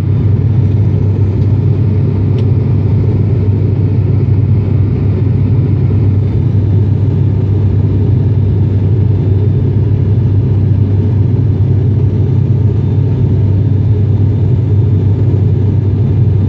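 A jet airliner's engines roar with a steady low drone inside the cabin.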